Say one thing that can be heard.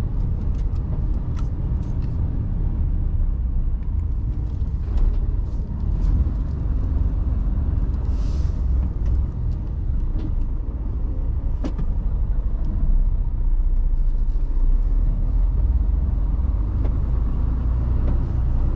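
A truck's diesel engine rumbles steadily from inside the cab.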